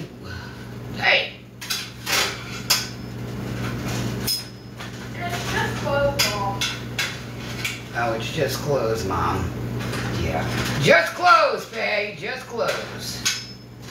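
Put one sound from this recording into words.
Metal pans clink and rattle inside an oven.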